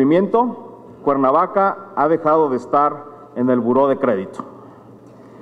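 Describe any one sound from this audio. A man speaks formally into a microphone, heard through loudspeakers.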